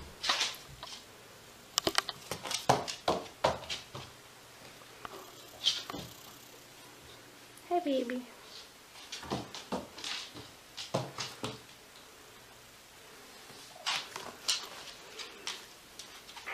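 Small paws thump and scratch on a wooden floor.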